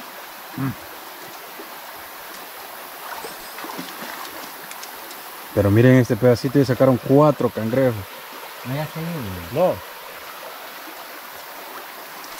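Water splashes as a man wades.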